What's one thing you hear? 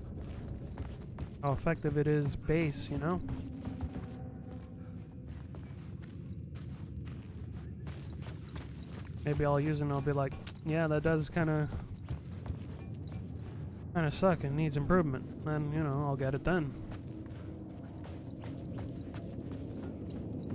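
Footsteps crunch slowly on gravel.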